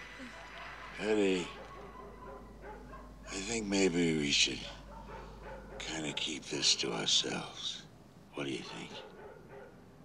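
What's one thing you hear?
A man speaks in a strained voice.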